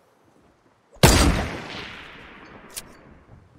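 A rifle fires one loud shot that rings out and fades.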